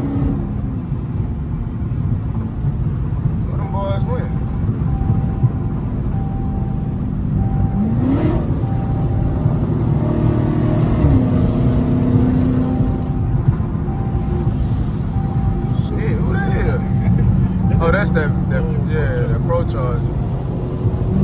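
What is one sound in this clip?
Tyres rumble low and steady on the road.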